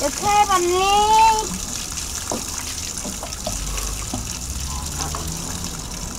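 Water pours and splashes onto a person.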